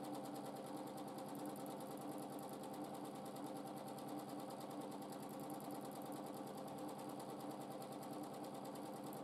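A sewing machine stitches with a fast, steady whirr and rapid ticking.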